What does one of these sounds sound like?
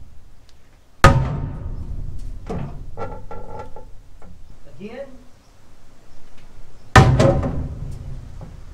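A sledgehammer strikes metal with loud ringing clangs.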